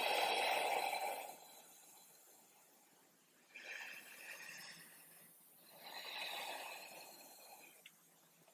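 A woman breathes out slowly and deeply.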